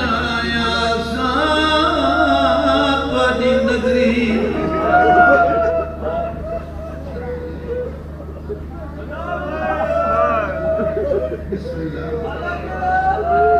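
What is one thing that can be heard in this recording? A middle-aged man speaks with passion into a microphone over loudspeakers.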